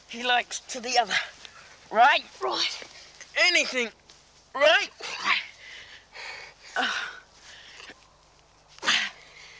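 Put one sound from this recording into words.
A young man shrieks and laughs playfully close by.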